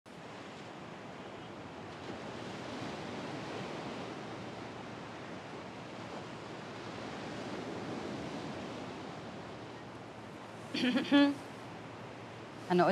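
Gentle waves wash softly onto a shore.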